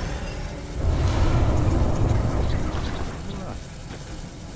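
A torch flame roars and crackles.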